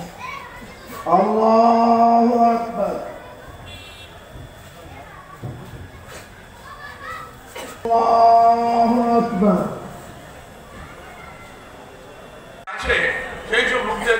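A man chants loudly through loudspeakers in long, drawn-out calls.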